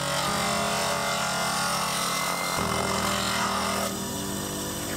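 Wood grinds with a harsh rasp against a spinning grinding wheel.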